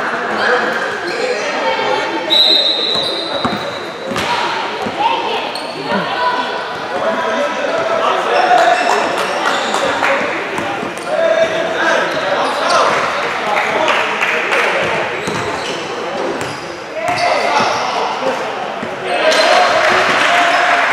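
Sneakers squeak on a gym floor in a large echoing hall.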